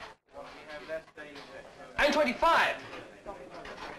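A man speaks in a theatrical voice.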